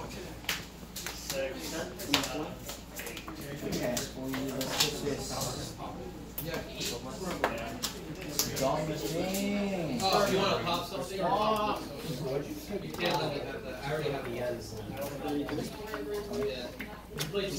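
Cards tap and slide onto a table.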